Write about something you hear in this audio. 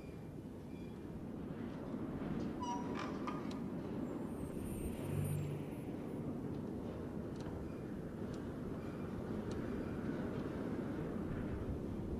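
A metal mechanism clicks and whirs as its rings turn.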